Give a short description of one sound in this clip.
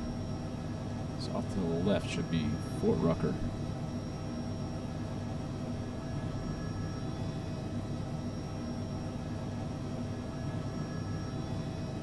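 A helicopter engine and rotor drone steadily.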